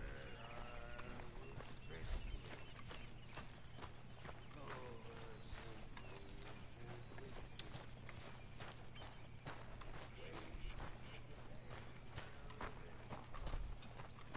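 Footsteps run quickly over grass and dirt.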